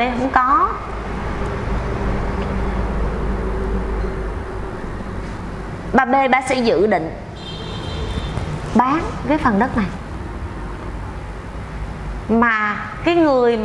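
A middle-aged woman speaks with animation close to a microphone.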